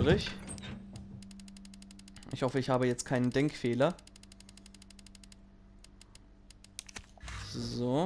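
Short electronic clicks tick quickly in a steady run.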